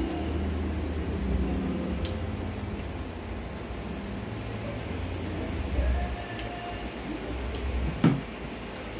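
A woman chews and slurps food close by.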